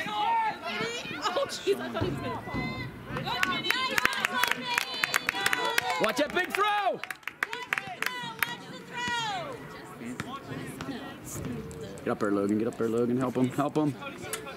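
Young spectators nearby shout and cheer excitedly outdoors.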